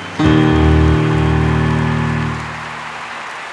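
A man sings a long held note through a microphone.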